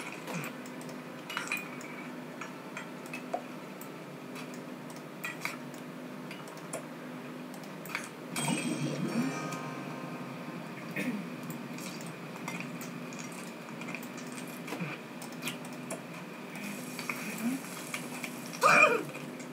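Game music and sound effects play from a small loudspeaker.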